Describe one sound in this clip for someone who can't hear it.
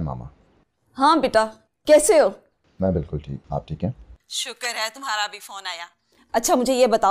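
A middle-aged woman speaks with animation on a phone, close by.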